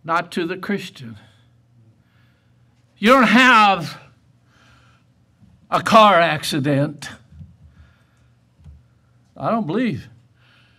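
An elderly man preaches with emphasis through a microphone, in bursts with pauses.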